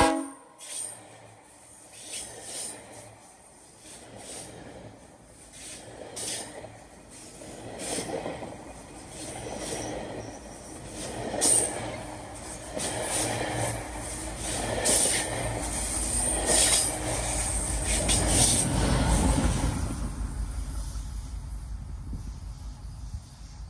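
A passenger train rumbles past close by.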